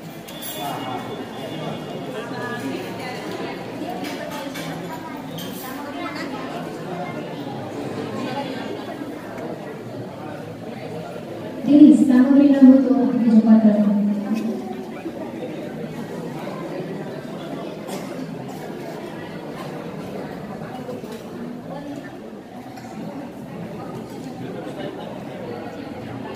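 A crowd of men and women chatter in an echoing room.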